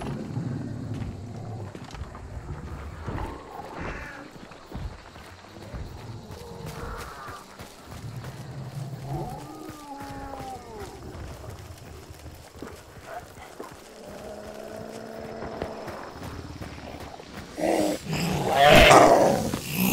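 Footsteps crunch on dirt.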